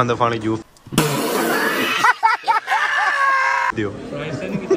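A man laughs loudly up close.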